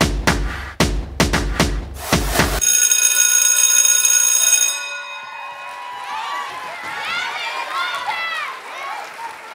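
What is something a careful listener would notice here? Loud dance music plays over loudspeakers in a large hall.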